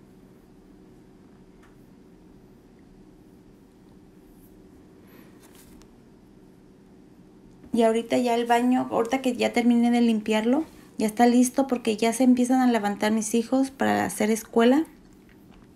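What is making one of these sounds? A woman scrubs a sink with a cloth.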